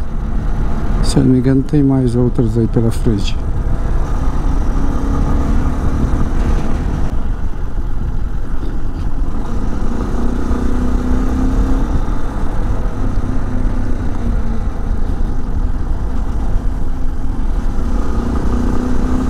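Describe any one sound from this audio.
A motorcycle engine hums steadily and rises and falls in pitch as it shifts gears.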